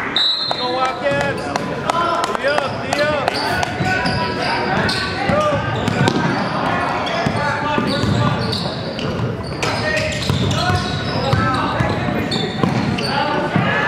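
A basketball bounces on a hard wooden court.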